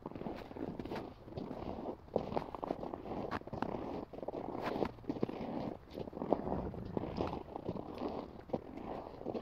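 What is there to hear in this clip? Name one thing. Footsteps crunch on snow.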